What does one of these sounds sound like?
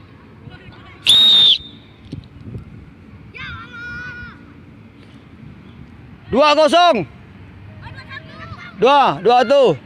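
Children shout loudly across an open field.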